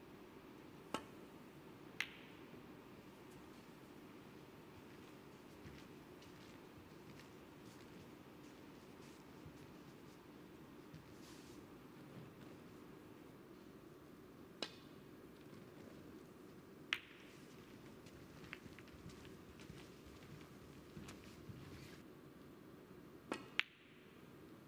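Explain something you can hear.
Snooker balls click sharply as a cue strikes them.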